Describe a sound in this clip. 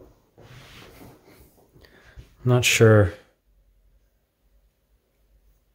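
A cotton swab rubs softly against a circuit board.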